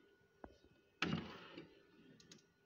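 A wooden drawer slides open with a thump.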